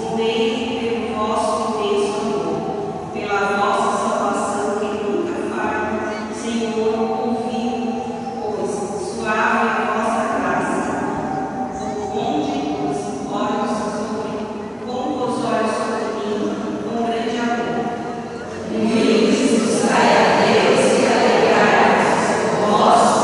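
A group of women sing a hymn together through a loudspeaker in a large echoing hall.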